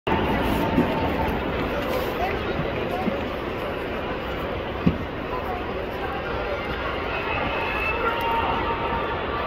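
A large crowd murmurs and chatters steadily all around.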